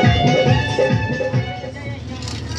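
A hand drum beats a rhythm.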